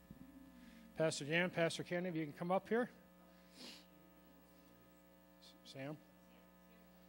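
A middle-aged man speaks into a microphone over loudspeakers in a large room.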